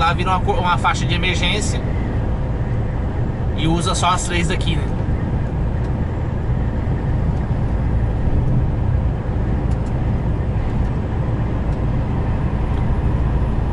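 A heavy engine rumbles steadily while driving.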